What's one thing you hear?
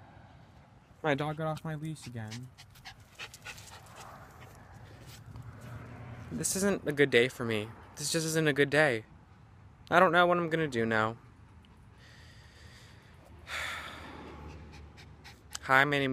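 A young man talks close up, in short bursts.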